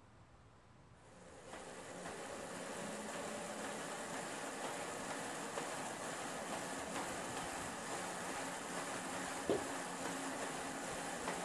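A bicycle on a trainer whirs steadily as it is pedalled.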